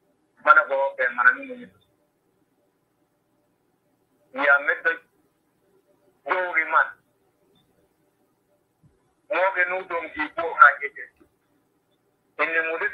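A middle-aged man speaks calmly in short phrases over an online call, with pauses between them.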